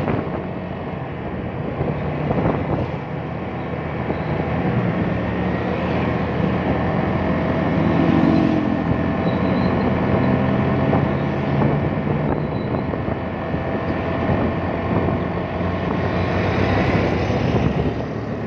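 A motorbike engine hums steadily up close while riding.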